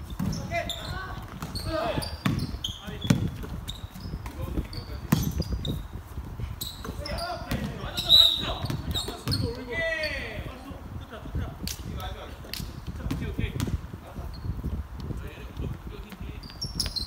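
A basketball bounces on a wooden gym floor in an echoing hall.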